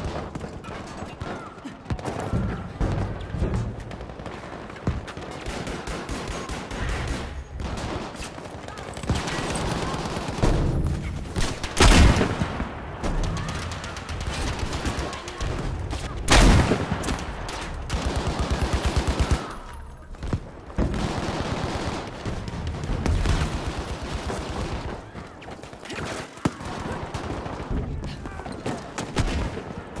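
Gunshots ring out in short loud bursts.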